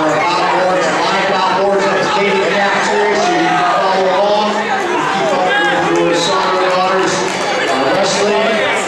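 A man shouts instructions loudly from the side.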